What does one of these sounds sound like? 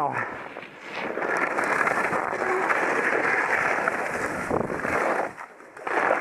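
Skis scrape and hiss over packed snow close by.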